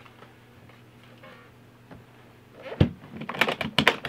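A guitar case lid thumps shut.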